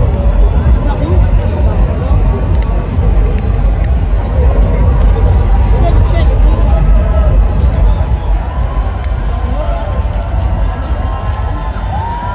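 A large crowd cheers and chatters loudly outdoors.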